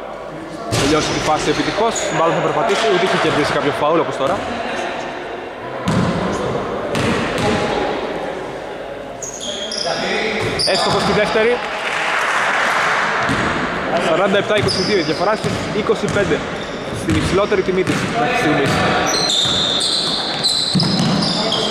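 Men shout and call out across a large echoing gym.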